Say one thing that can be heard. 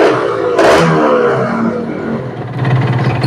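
A motorcycle engine revs briefly as the throttle is twisted.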